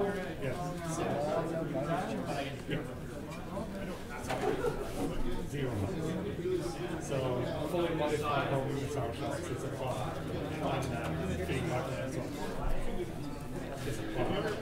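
Small plastic models tap and slide on a tabletop.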